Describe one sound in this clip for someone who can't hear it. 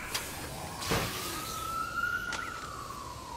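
A small drone whirs with a rising and falling buzz.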